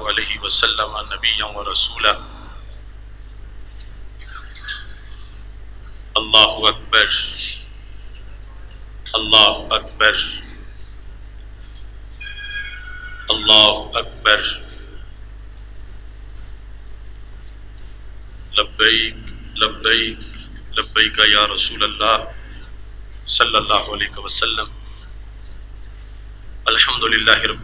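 A middle-aged man speaks slowly and deliberately into a microphone, with long pauses.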